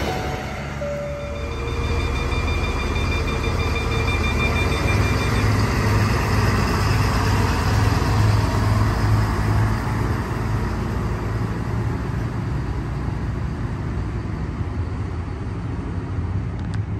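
A diesel train engine rumbles steadily and pulls away.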